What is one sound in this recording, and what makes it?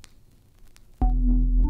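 Loud music suddenly starts playing.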